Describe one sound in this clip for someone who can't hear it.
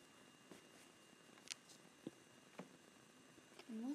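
Paper peels softly off a rubber stamp.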